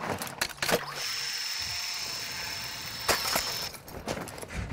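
A zipline pulley whirs steadily along a cable.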